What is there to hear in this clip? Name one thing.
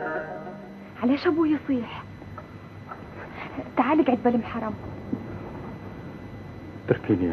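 A woman speaks in a pleading, upset voice.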